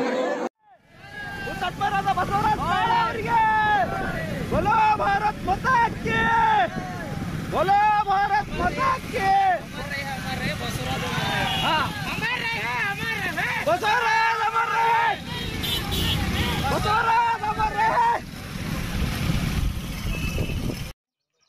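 Young men shout and chant together in bursts, close by, outdoors.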